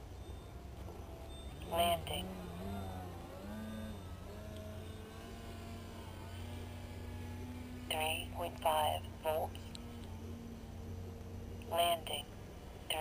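A small plane's engine drones overhead, its pitch wavering.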